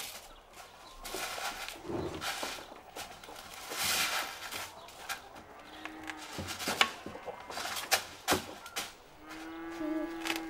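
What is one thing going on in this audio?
Wood pellets rustle and rattle as a plastic scoop digs into them.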